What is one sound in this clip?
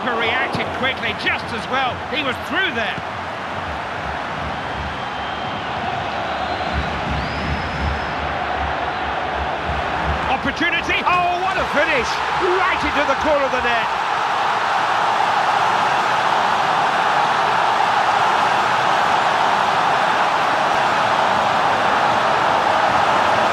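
A stadium crowd roars steadily and swells louder after a goal.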